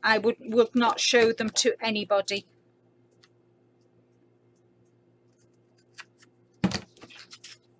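Adhesive tape peels and tears off a roll.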